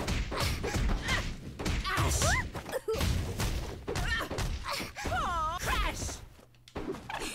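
Punches and blasts thump and crackle in quick bursts.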